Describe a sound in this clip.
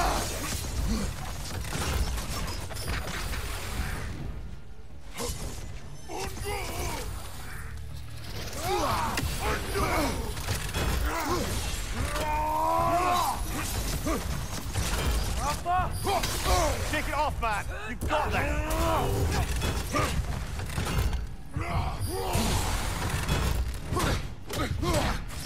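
Blades swing and strike with heavy thuds and clangs.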